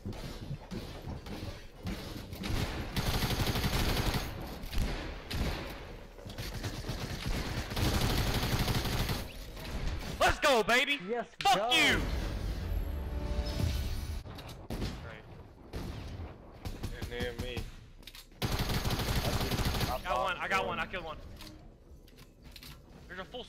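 Video game gunshots fire in bursts.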